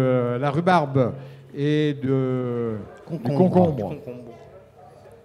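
An elderly man speaks with animation into a microphone over loudspeakers in an echoing hall.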